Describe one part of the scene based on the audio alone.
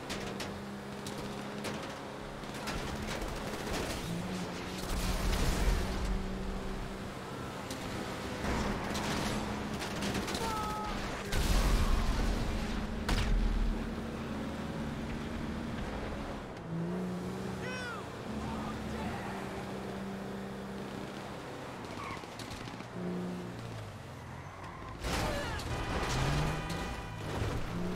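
A heavy vehicle's engine drones steadily, shifting pitch as it drives along a road.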